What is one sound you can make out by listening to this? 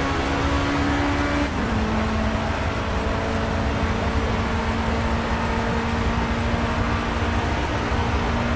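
A racing car engine roars at high revs and climbs in pitch.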